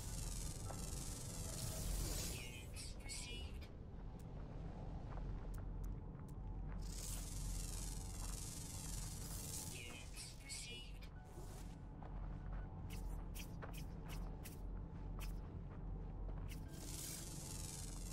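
An electronic scanner whirs in rising, warbling bursts.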